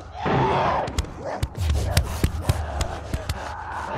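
Short sharp bangs go off in quick succession.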